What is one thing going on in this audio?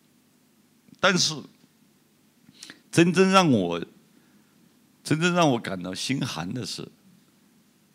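A middle-aged man speaks calmly into a microphone in short bursts.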